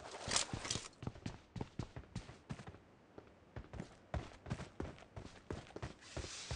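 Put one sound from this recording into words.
Footsteps scrape quickly over rock.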